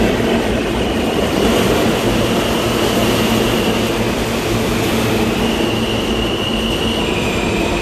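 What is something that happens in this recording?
Train brakes squeal as a subway train slows to a stop.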